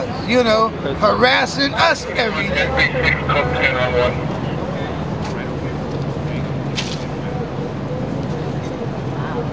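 A woman shouts angrily outdoors.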